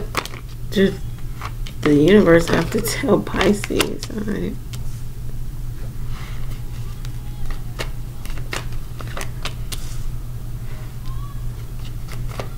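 Cards tap softly onto a wooden table.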